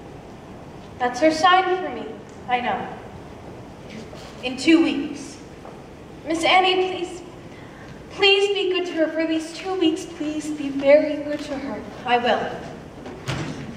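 Young women speak with animation, heard from a distance in a large hall.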